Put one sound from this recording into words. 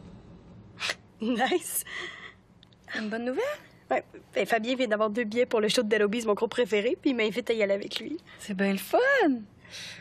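A woman talks with animation, close by.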